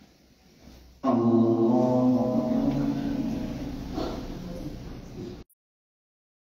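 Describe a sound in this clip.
A man chants a long call loudly through a microphone in a large echoing hall.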